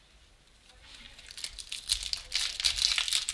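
A foil wrapper crinkles and rustles.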